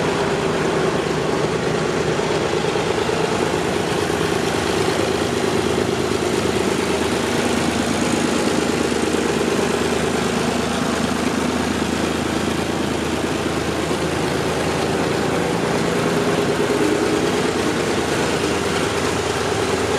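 A diesel farm tractor engine idles.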